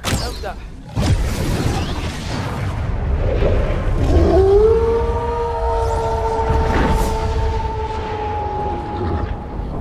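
Fire roars and rushes across the sky.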